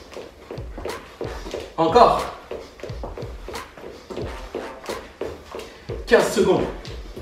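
Feet thump on an exercise mat in a quick rhythm.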